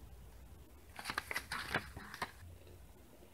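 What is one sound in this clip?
A paper booklet rustles and crinkles as it is handled close by.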